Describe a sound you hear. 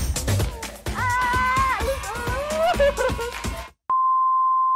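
A young woman laughs loudly close to a microphone.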